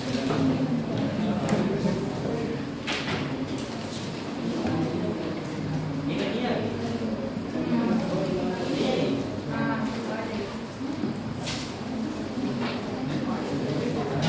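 A young man talks steadily in a room with a slight echo.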